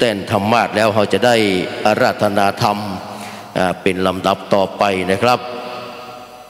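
A man speaks into a microphone, heard through loudspeakers in a room.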